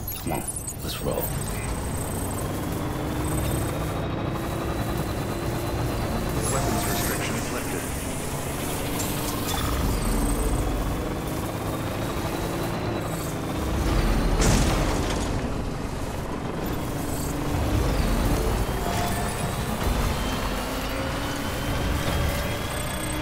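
A vehicle engine rumbles and revs steadily.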